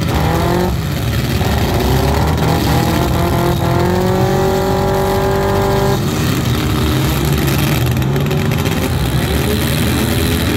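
Several car engines rumble and rev loudly outdoors.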